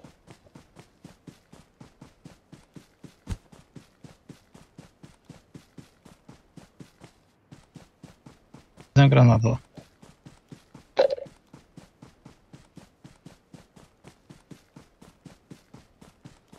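Quick footsteps run steadily through grass.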